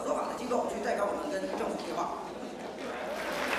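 A woman speaks up in a crowded room.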